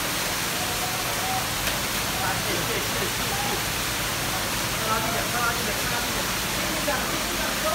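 Men talk nearby over the noise.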